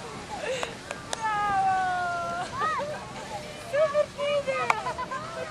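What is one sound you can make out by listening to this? A woman speaks encouragingly nearby.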